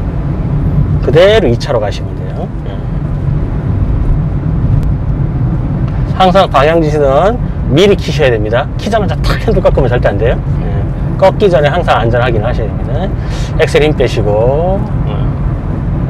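An elderly man speaks calmly, close to a microphone.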